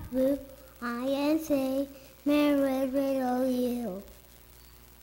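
A young boy sings into a microphone in an echoing hall.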